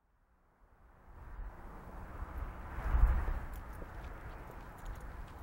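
Wind blows outdoors and rumbles.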